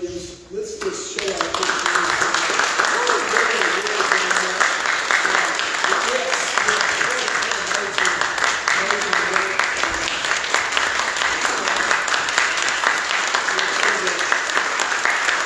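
An organ plays loudly and fills a large echoing hall.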